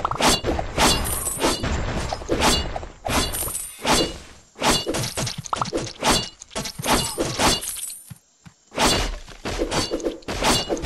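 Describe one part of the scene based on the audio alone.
Game sound effects of arrows firing and hitting enemies play in bursts in a mobile archery game.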